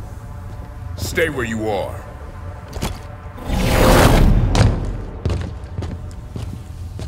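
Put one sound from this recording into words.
A young man shouts excitedly close to a microphone.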